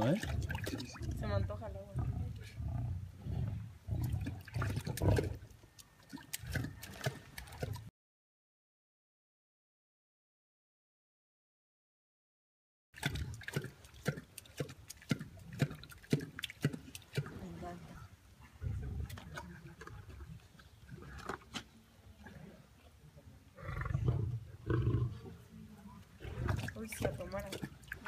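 A lion laps water noisily and steadily.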